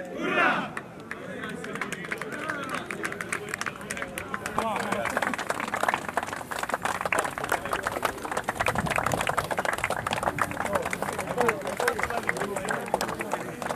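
Hands clap and slap in quick, scattered bursts.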